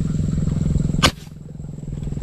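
A gun fires once with a sharp crack.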